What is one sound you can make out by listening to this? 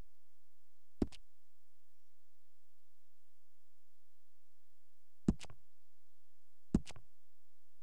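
Short clicks sound as menu options change.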